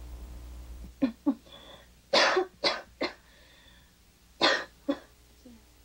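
A woman sobs and gasps nearby.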